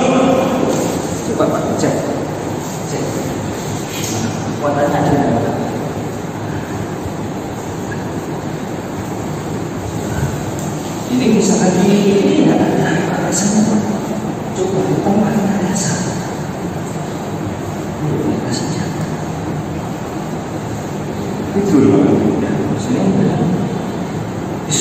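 Adult men talk with animation close by, in an echoing room.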